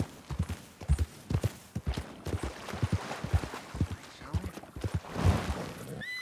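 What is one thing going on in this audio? Hooves splash through shallow water.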